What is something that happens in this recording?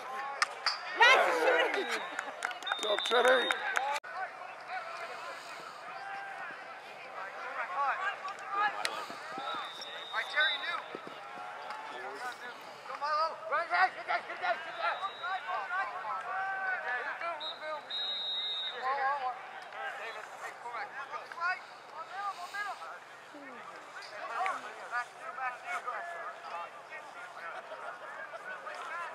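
Young players shout and call out across an open outdoor field.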